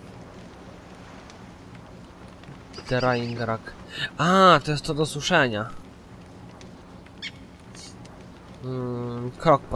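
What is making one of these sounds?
A small fire crackles softly.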